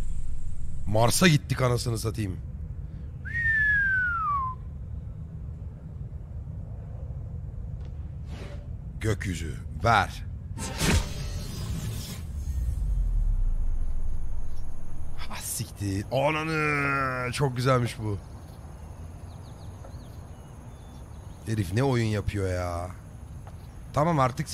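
A man speaks casually into a nearby microphone.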